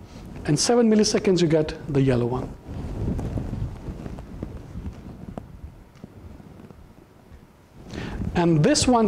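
A man lectures through a microphone, speaking calmly with pauses.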